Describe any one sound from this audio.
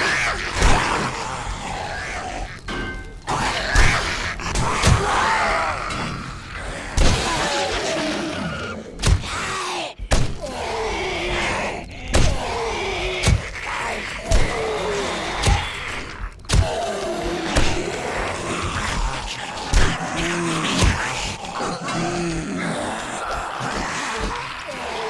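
A machete strikes into flesh with heavy thuds.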